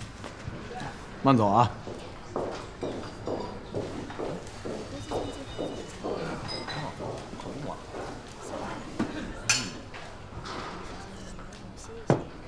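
A crowd murmurs softly in the background.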